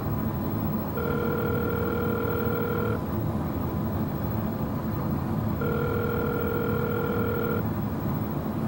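A phone's ringing tone sounds through a handset.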